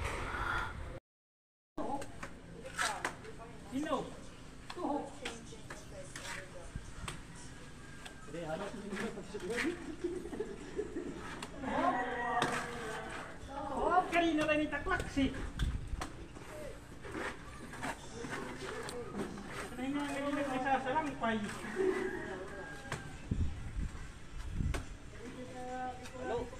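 Trowels scrape wet plaster against a wall.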